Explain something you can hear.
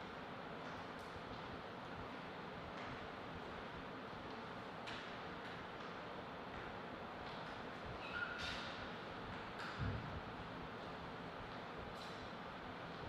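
A table tennis ball taps lightly now and then.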